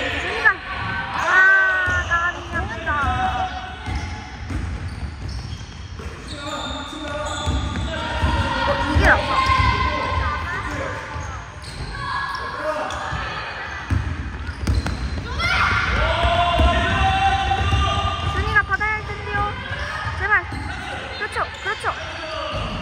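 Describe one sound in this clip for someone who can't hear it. Young girls shout and call out to each other in a large echoing hall.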